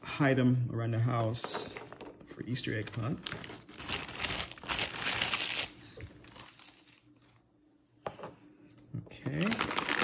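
Plastic eggs clack onto a hard counter.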